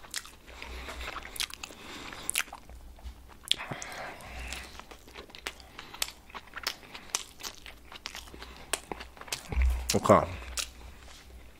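A paper wrapper crinkles as food is picked up and set down.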